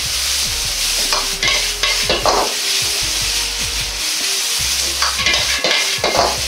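Food sizzles loudly in a hot wok.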